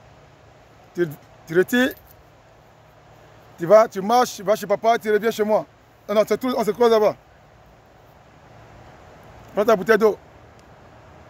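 A young man speaks in short bursts close by, outdoors.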